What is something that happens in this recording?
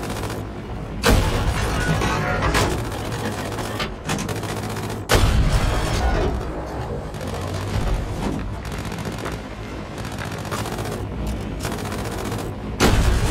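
A tank gun fires with loud booms.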